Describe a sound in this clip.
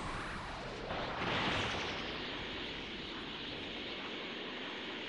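A rushing whoosh sweeps past as a figure flies fast.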